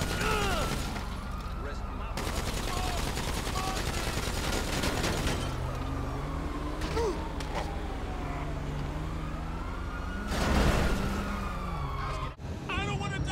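A car engine revs and idles.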